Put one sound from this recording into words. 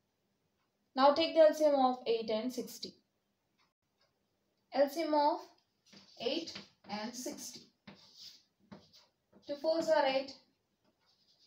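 A young woman speaks calmly, explaining step by step.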